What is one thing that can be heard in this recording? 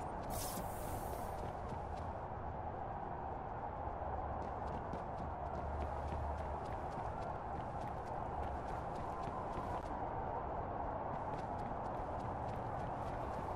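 Footsteps pad softly on a hard floor.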